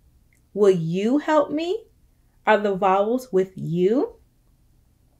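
A young woman reads out with animation, close to a microphone.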